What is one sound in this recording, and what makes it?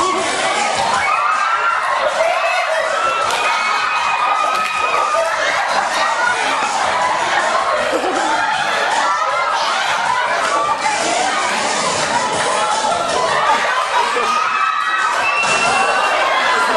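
A crowd of children shouts and cheers loudly in a noisy hall.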